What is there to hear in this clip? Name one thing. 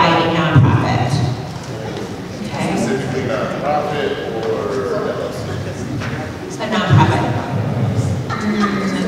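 A woman speaks into a microphone over a loudspeaker in a large echoing hall.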